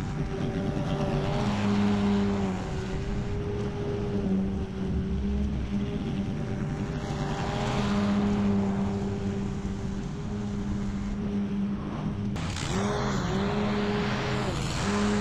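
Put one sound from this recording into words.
A petrol lawn mower engine drones steadily close by.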